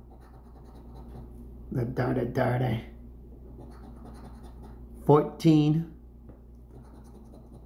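A coin scratches across a card.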